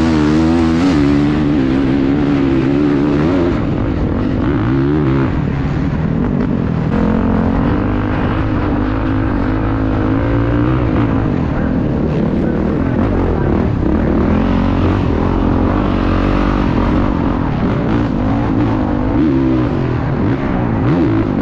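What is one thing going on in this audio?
Wind buffets loudly past the rider.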